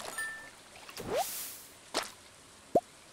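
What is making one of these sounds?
A short chime plays as a fish is caught.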